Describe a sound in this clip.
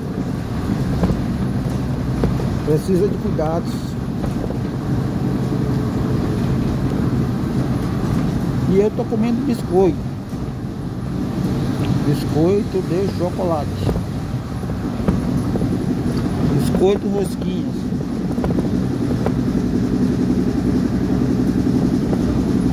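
A car engine hums and tyres rumble steadily on the road, heard from inside the car.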